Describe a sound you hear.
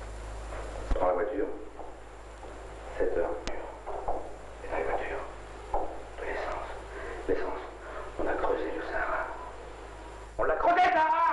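A middle-aged man speaks in a low, gruff voice.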